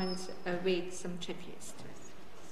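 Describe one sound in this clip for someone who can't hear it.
A woman speaks calmly into a microphone in a hall.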